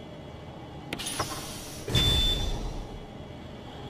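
A metal capsule clunks into place in a machine.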